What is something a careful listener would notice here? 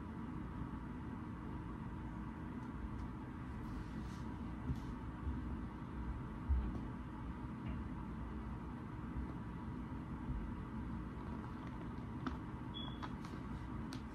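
Paper pages rustle softly under a hand.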